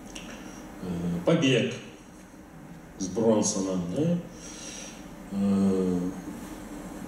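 A man speaks through a microphone and loudspeakers, in short phrases with pauses.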